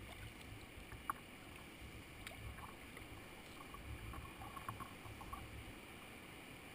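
Water laps and splashes against a kayak's hull.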